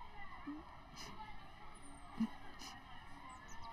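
A woman sniffles quietly while crying close by.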